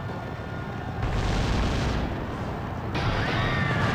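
A volley of gunshots rings out.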